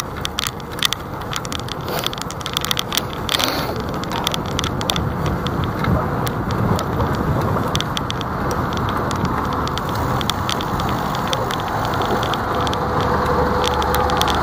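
A car drives steadily along a road with a low rumble of tyres and engine.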